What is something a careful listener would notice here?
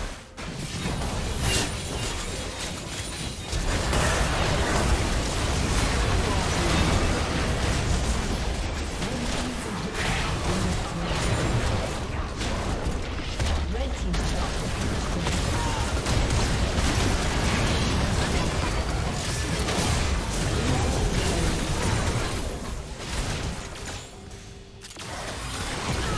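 Game spells whoosh and crackle in a busy fight.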